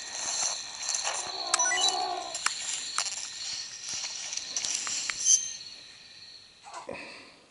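A handheld game console plays game music and effects through its tiny speaker.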